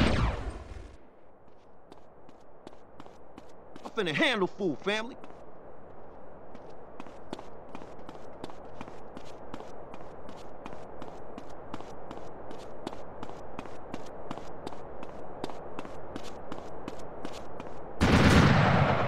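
Footsteps run quickly and steadily on pavement.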